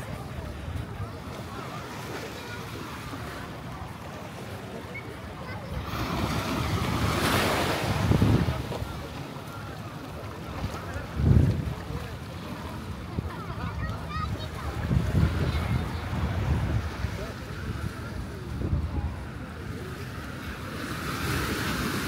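Wind blows outdoors in gusts.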